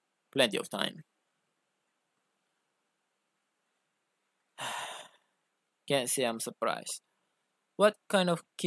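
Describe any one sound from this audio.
A young man speaks through a microphone in short phrases with long pauses.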